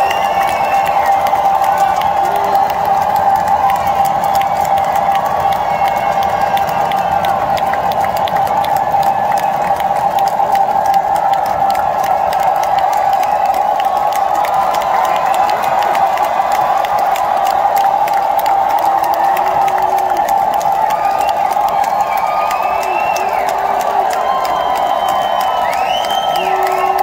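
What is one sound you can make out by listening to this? A rock band plays loudly through a big outdoor sound system.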